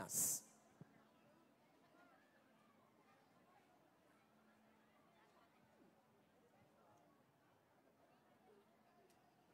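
A large crowd murmurs and chatters faintly outdoors.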